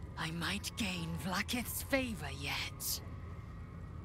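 A woman speaks slowly and firmly, close to a microphone.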